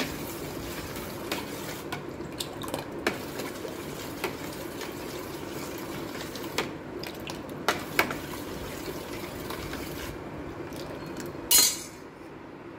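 Thick batter splashes and slops as it is stirred.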